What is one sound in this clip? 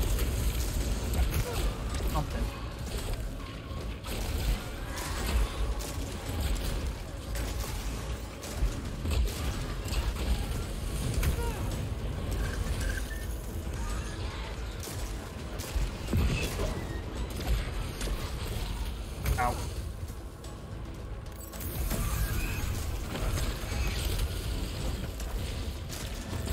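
Gunfire and energy blasts crackle in quick bursts.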